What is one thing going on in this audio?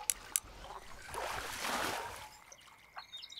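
A fish splashes out of the water.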